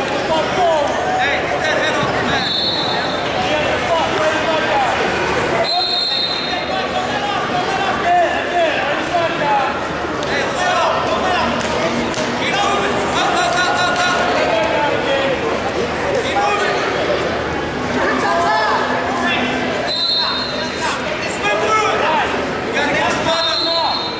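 A crowd of spectators talks and shouts throughout a large echoing hall.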